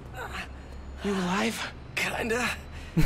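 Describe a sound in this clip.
A young man's voice asks a question in a game scene.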